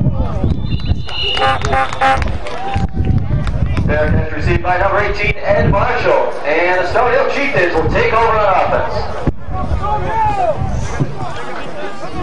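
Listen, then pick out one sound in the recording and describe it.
A crowd of spectators and players shouts and cheers in the distance.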